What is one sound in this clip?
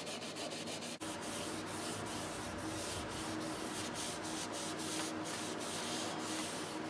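A cloth wipes back and forth along a metal barrel with a soft, rhythmic rustle.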